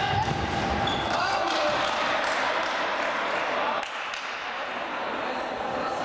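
Shoes squeak on a hard court floor in a large echoing hall.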